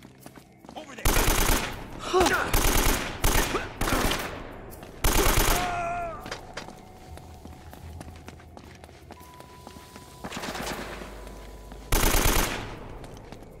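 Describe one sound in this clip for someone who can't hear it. Rifle shots fire in loud bursts.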